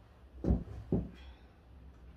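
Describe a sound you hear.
Two dull thumps knock against a wall.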